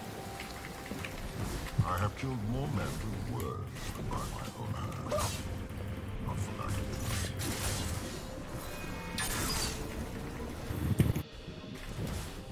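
Spell and weapon hit effects clash and crackle in quick bursts.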